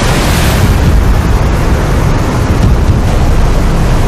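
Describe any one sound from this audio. Huge waves crash and churn with a heavy roar.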